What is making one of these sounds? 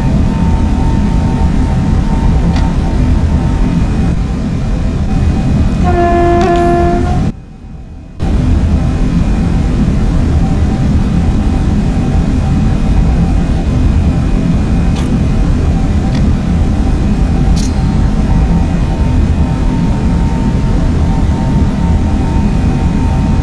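A train rumbles steadily along the tracks at speed.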